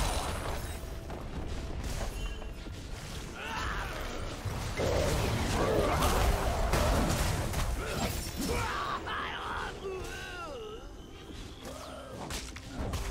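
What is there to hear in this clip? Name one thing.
Game spell effects crackle and blast during a fight.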